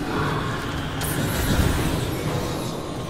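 A flamethrower bursts out with a loud roaring whoosh.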